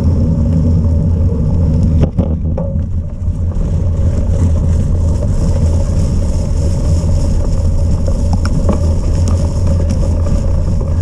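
Wind rumbles and buffets loudly against the microphone outdoors.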